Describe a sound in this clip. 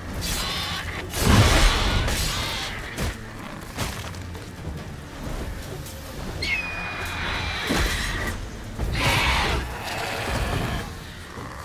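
A sword swishes and strikes a large beast.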